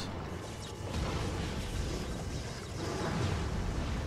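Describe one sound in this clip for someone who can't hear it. A huge creature roars and growls deeply.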